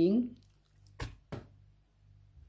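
Raw ground meat drops into a glass jar with a soft thud.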